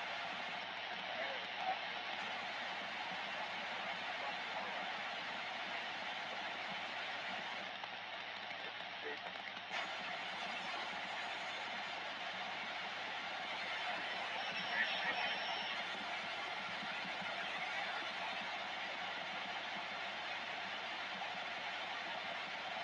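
A radio loudspeaker hisses with steady static.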